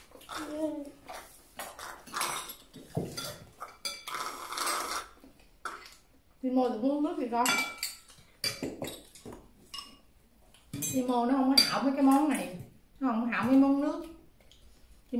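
Chopsticks and spoons clink against bowls.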